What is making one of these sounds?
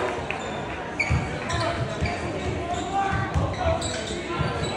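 A basketball bounces with hollow thuds on a wooden floor.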